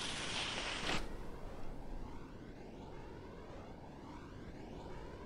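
Wind rushes past a flying ski jumper.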